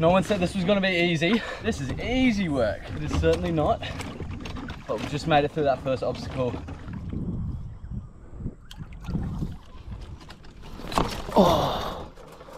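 A paddle splashes and swishes through water.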